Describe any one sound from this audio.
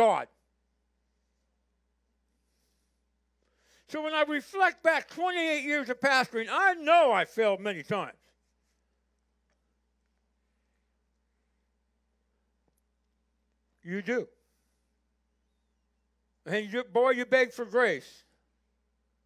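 An older man speaks calmly through a microphone, with long pauses.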